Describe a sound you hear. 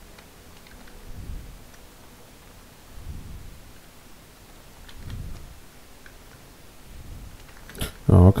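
Soft low whooshes sound each time a game menu selection changes.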